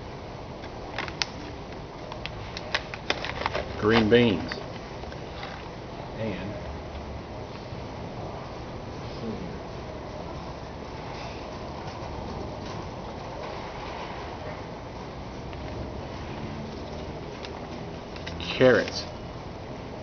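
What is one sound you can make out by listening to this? Seed packets rustle and click as a hand handles them.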